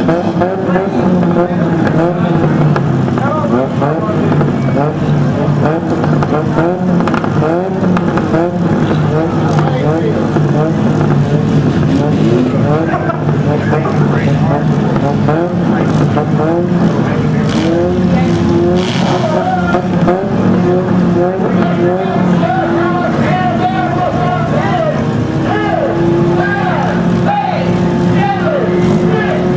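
Several car engines idle and rumble loudly outdoors.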